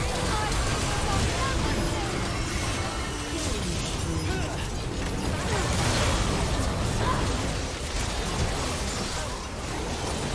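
Magic spells blast and crackle in a hectic fight.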